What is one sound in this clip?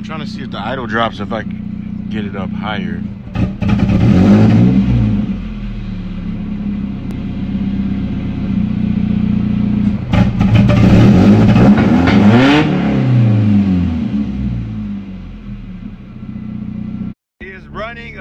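An inline-four car engine idles.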